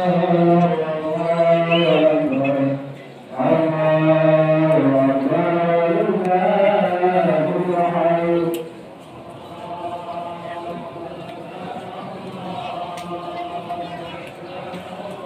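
A crowd of people chants loudly in unison outdoors, the chant fading after a while.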